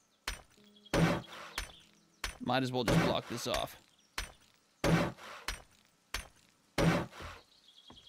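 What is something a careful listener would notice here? An axe strikes wood with sharp, evenly spaced knocks.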